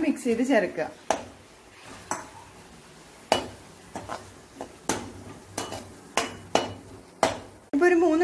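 A metal spatula scrapes against a metal pan.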